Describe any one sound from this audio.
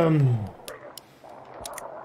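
A revolver's cylinder clicks as cartridges are loaded.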